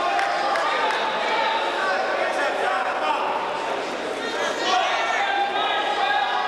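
A man calls out loudly nearby in an echoing hall.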